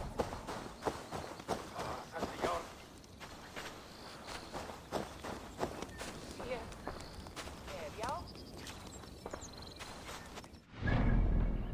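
Footsteps tread quickly through grass.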